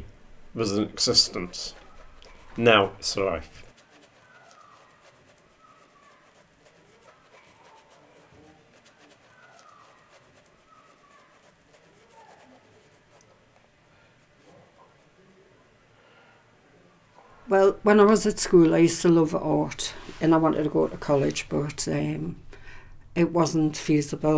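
A paintbrush dabs and strokes across a canvas.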